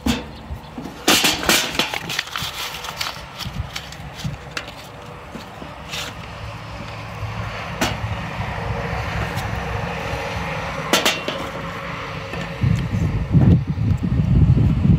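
Pieces of wood clatter and knock against a metal grill.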